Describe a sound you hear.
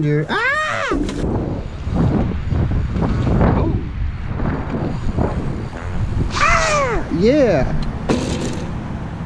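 Bicycle tyres roll over pavement.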